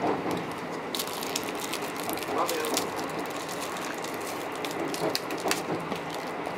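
A plastic cup crinkles and taps as a hand handles it.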